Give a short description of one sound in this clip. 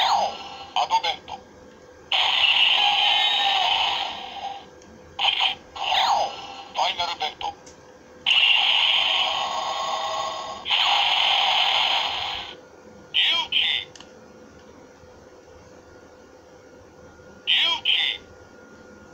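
A hand clicks a trigger on a plastic toy.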